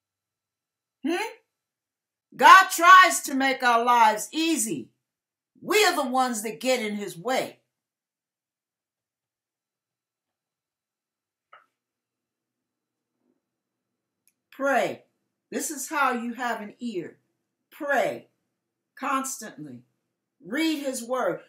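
An older woman speaks with animation close to a microphone, with long pauses.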